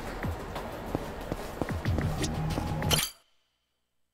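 Footsteps tap along a street.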